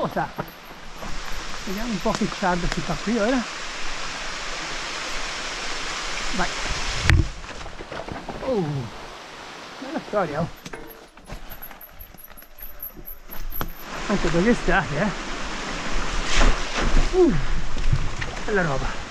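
A shallow stream trickles and splashes over rocks close by.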